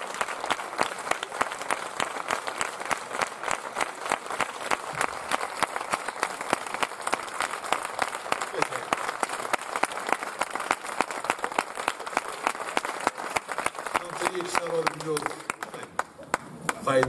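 An audience applauds loudly in an echoing hall.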